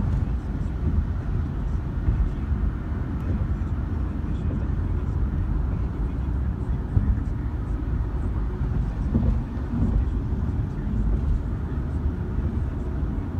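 A car's engine hums and its tyres roar steadily on the road, heard from inside the car.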